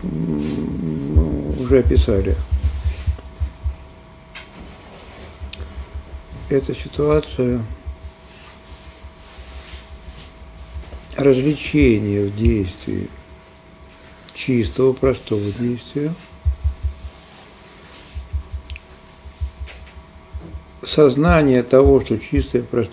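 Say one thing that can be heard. An elderly man speaks slowly and calmly into a nearby microphone, with long pauses.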